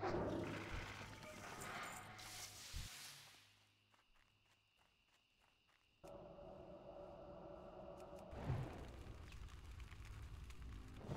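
Blows land with thuds in a fight.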